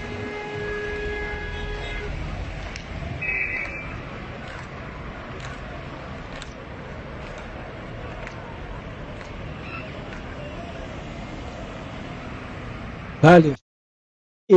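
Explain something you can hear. Outdoor street noise rumbles steadily.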